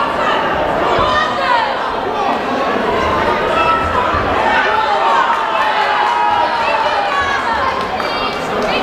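A crowd of spectators chatters and shouts loudly throughout.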